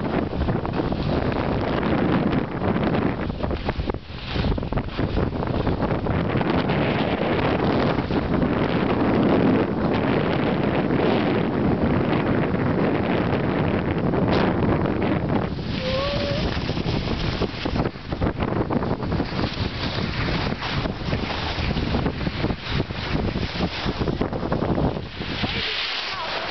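Wind rushes loudly past the microphone outdoors.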